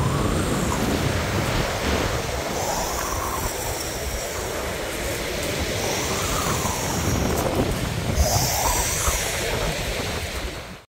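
Strong wind blows outdoors.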